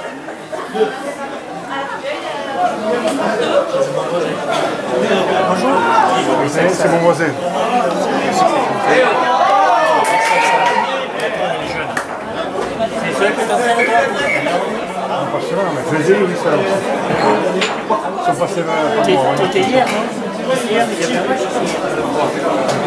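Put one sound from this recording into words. Young men call out to each other across a field.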